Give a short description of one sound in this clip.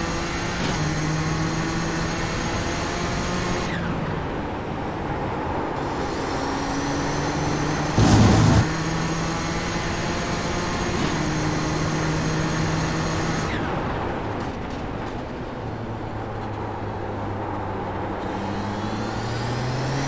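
A racing car engine roars, rising in pitch and dropping sharply at each gear shift.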